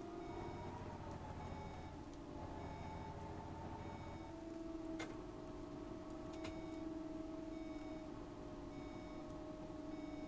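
A turn signal ticks in a steady rhythm.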